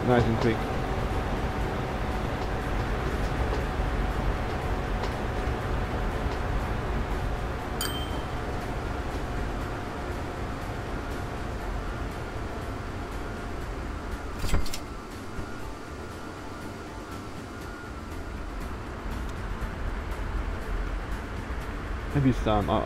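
A train engine rumbles steadily and quietly.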